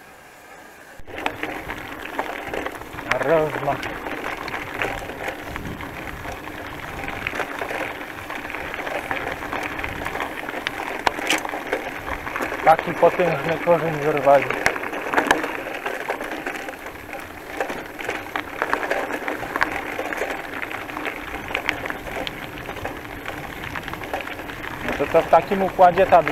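Bicycle tyres crunch and rattle over a rough gravel track.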